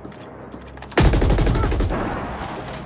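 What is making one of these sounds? A laser gun fires with a loud blast.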